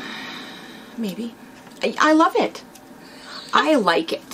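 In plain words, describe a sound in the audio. A younger woman laughs and speaks cheerfully.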